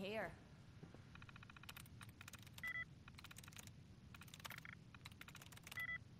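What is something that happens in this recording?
A computer terminal beeps and chirps as keys are pressed.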